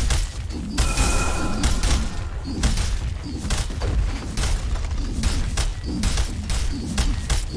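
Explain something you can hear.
Game weapons clash and spells crackle in rapid bursts of battle.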